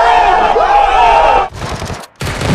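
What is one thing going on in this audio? A young man shouts excitedly nearby.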